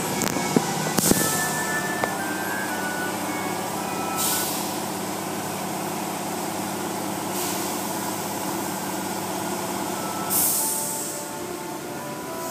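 Water sprays and splashes onto a car.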